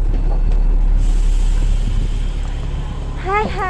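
Outdoor traffic hisses and hums.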